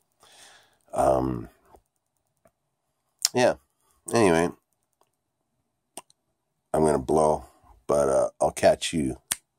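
A man speaks close up in short, expressive bursts with pauses between them.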